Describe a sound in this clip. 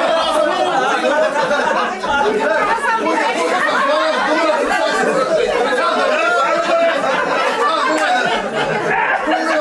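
An older man laughs heartily.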